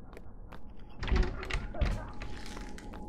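A locked door handle rattles as a door is tried.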